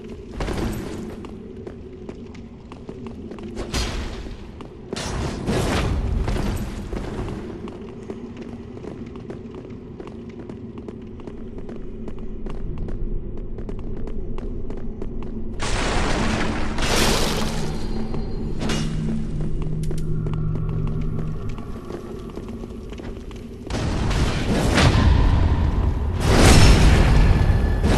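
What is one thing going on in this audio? Weapons clash and strike in loud bursts.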